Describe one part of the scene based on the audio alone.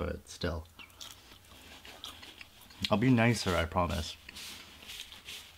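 A young man eats fries, chewing close to a microphone.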